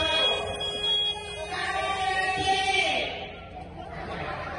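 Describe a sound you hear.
A man speaks into a microphone over a loudspeaker in a large echoing tent.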